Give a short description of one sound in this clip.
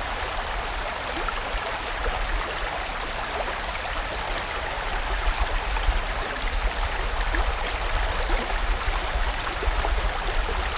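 A fast stream rushes and splashes over rocks.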